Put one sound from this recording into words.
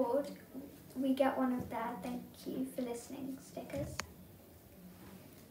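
A young girl speaks calmly and close by.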